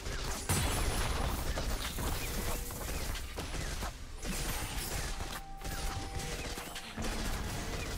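Magic spells crackle and whoosh in a fast fight.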